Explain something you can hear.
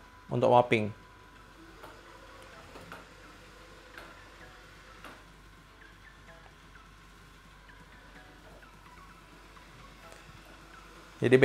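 A robot vacuum hums quietly as it moves across the floor.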